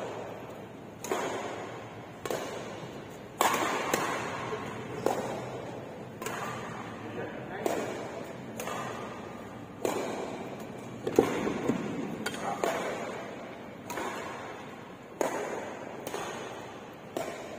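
Sneakers squeak and shuffle on the court floor.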